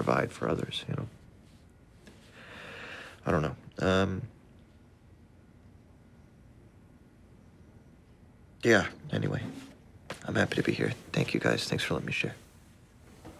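A young man speaks quietly and closely.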